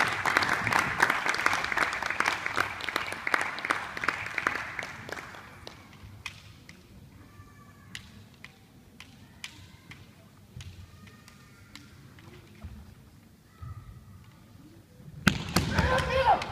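Bamboo swords clack together sharply in a large echoing hall.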